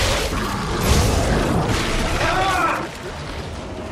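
A weapon fires in sharp bursts.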